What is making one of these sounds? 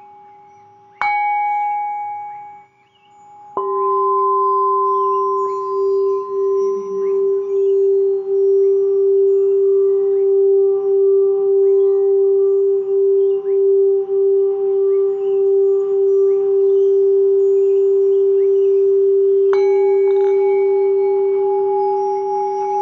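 A singing bowl is struck and rings with a clear, lingering tone.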